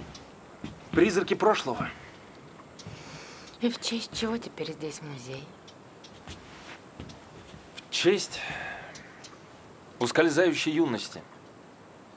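A young man speaks quietly and close by.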